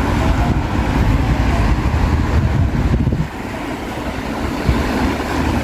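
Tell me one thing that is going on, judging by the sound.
Car tyres hiss on a wet road nearby.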